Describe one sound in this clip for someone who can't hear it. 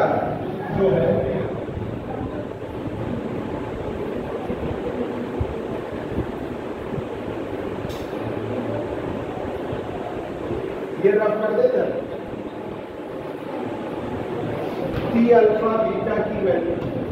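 A man speaks calmly, as if explaining.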